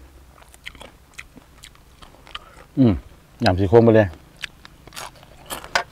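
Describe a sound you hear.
A man chews and crunches food close to the microphone.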